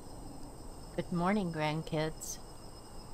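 An elderly man speaks briefly and calmly into a microphone.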